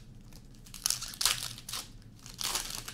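Hands tear open a foil pack of trading cards.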